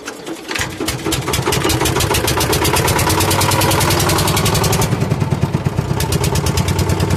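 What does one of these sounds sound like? A small boat engine starts up and runs with a loud, fast chugging.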